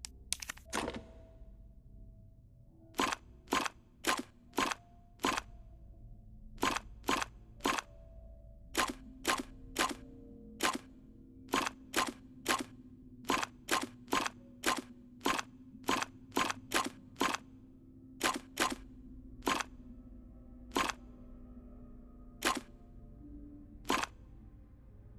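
Sharp electronic clicks sound as puzzle tiles turn, one after another.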